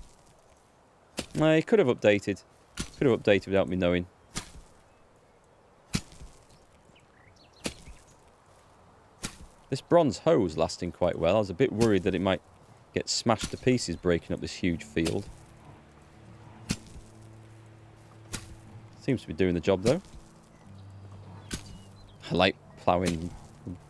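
A hoe digs into gravelly soil with dull thuds.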